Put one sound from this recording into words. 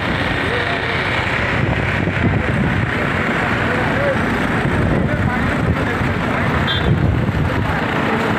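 A crowd of men chatters and talks outdoors.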